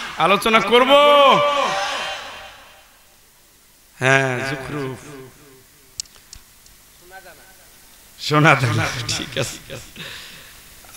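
A middle-aged man preaches with fervour into a microphone, his voice echoing.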